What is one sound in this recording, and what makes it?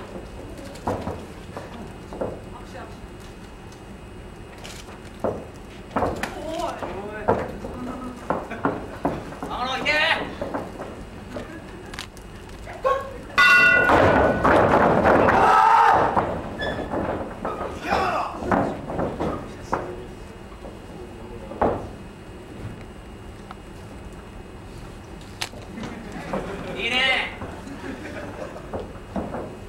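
Feet thud on a wrestling ring's canvas.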